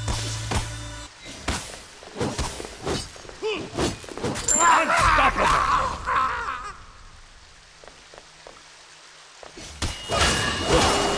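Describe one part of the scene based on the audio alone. Sword strikes and magic blasts crack and whoosh in quick bursts.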